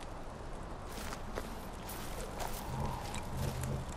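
Footsteps crunch on dry dirt.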